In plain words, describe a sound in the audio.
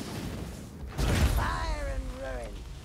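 A blast booms with a deep rumble.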